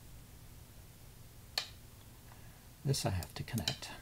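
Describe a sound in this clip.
A game stone clicks sharply onto a board.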